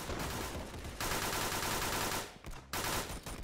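An automatic rifle fires a rapid burst in a video game.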